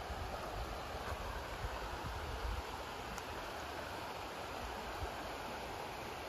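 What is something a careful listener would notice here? A river flows gently nearby.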